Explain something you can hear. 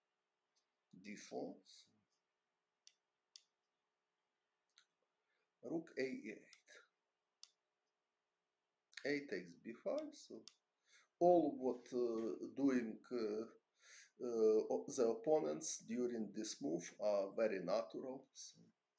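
A man talks calmly and thoughtfully, close to a microphone.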